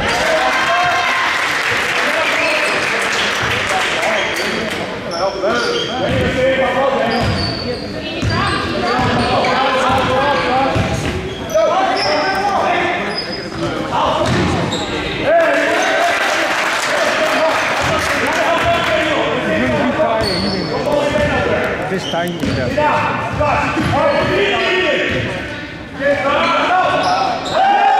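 A crowd of spectators chatters and cheers loudly in a large echoing gym.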